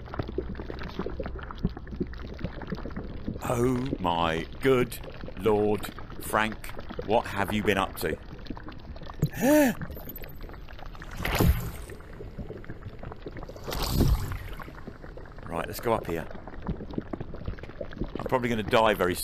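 Water sloshes and churns steadily.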